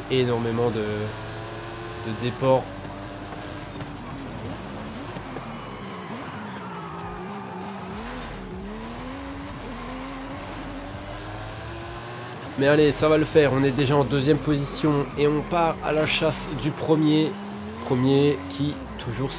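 A car engine roars and revs up and down as the car races.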